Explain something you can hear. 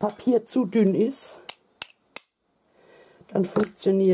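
Scissors click as they are picked up.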